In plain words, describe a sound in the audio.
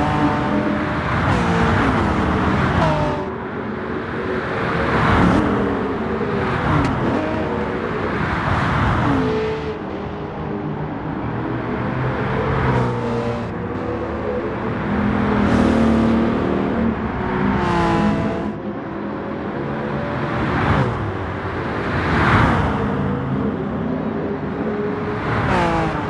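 Racing cars whoosh past one after another.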